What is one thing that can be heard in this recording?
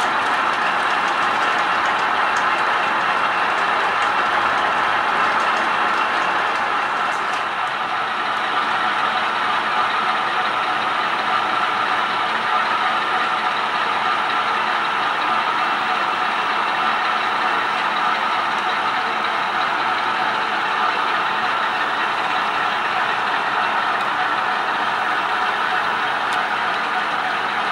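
A small model train motor whirs steadily.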